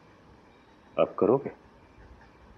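A man speaks a few short words calmly, close by.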